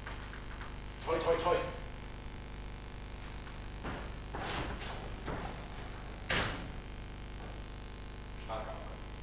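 A man speaks on a stage, heard from a distance in a large hall.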